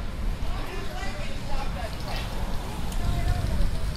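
A car drives slowly past.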